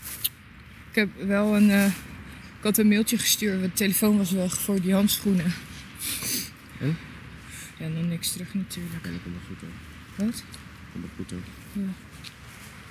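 A man and a woman talk to each other outdoors at a distance.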